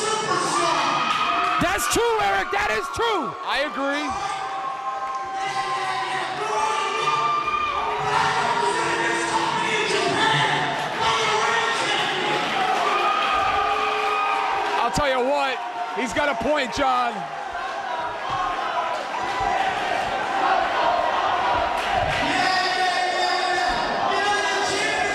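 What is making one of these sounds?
A young man speaks loudly into a microphone over loudspeakers in a large echoing hall.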